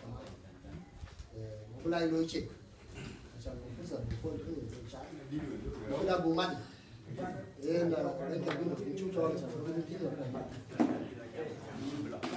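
A young man speaks to a group in a steady, animated voice.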